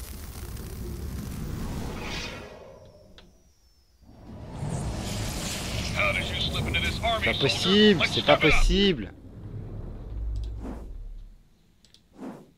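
Game sound effects whoosh and crackle loudly.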